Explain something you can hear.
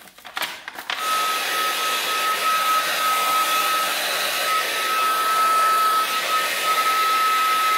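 A heat gun blows with a steady whining hum.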